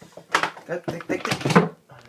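A metal latch clicks on a hard case.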